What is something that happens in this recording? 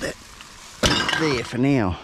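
Empty cans and bottles clatter as a bag is pushed among them.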